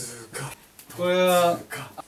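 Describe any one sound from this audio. A young man lets out a long, drawn-out shout.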